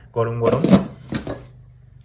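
Metal spoons clatter against a steel bowl.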